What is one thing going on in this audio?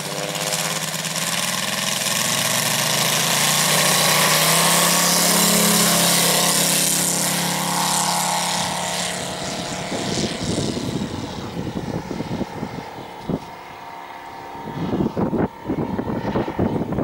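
A model plane's engine roars loudly and rises in pitch as it races past, then fades into a distant drone.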